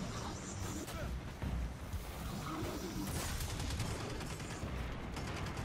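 Explosions boom and rumble.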